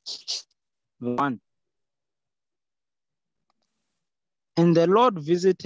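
A man speaks slowly and close by, in short bursts.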